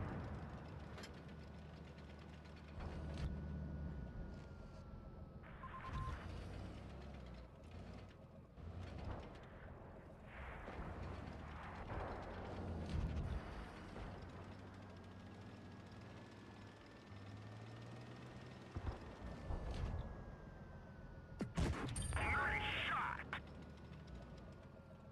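A heavy tank's engine rumbles as the tank drives.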